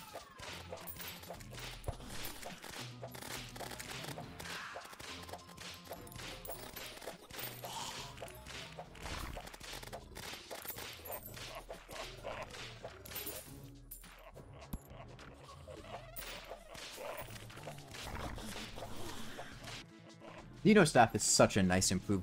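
Game weapon blasts zap and crackle rapidly.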